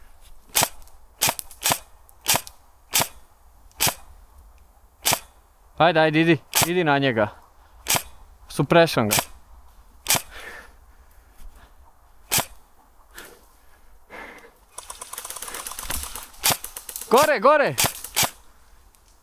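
A gun fires single shots in quick succession.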